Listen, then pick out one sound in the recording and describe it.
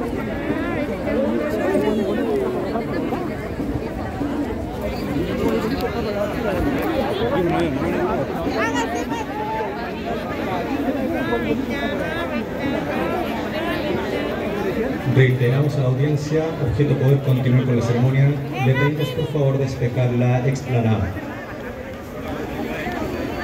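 A large crowd murmurs and chatters loudly outdoors.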